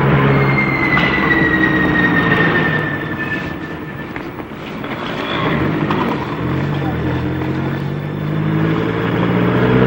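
A car engine hums steadily nearby.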